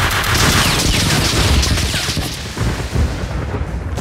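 An explosion booms and debris clatters.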